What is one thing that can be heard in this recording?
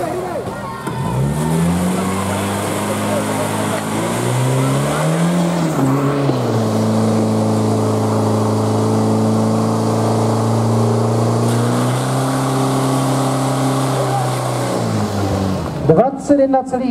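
A portable pump engine roars loudly, revving up and down before running steadily.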